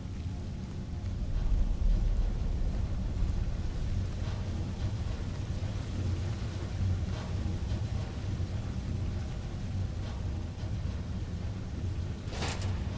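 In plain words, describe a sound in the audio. Water rushes and roars steadily nearby.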